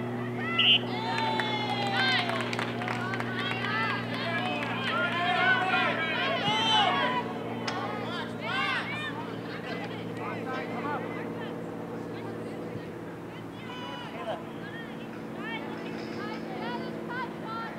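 Young women shout to one another across an open field.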